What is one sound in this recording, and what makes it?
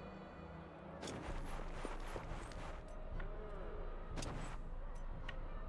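A magic spell bursts with a crackling rush.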